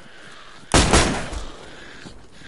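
Gunshots fire in a rapid, loud burst.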